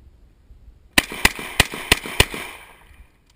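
A rifle fires five quick, loud shots outdoors, each ringing out with a short echo.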